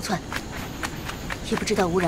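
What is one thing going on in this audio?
Footsteps run quickly over the ground.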